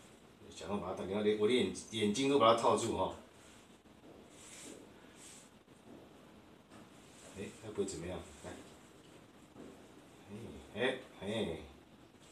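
A middle-aged man talks calmly and close by.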